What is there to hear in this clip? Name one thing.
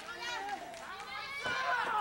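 A woman shouts with effort.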